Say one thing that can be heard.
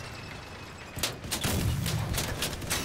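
A gun fires in a rapid burst of loud shots.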